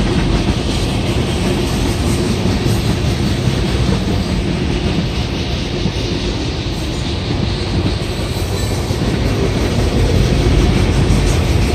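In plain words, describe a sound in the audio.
A long freight train rumbles past nearby, its wheels clattering on the rails.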